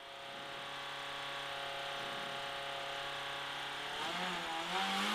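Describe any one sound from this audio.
A rally car engine idles steadily.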